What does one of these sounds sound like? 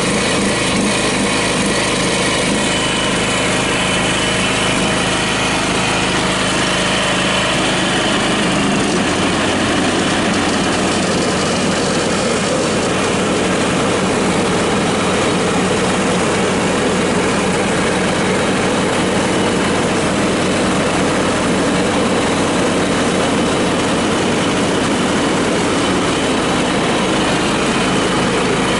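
A riding mower's engine runs loudly and steadily close by.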